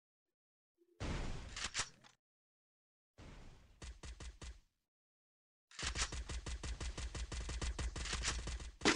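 A rifle fires in rapid bursts of automatic shots.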